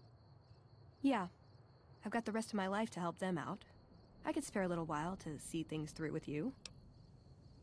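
A young woman speaks calmly in a slightly processed voice.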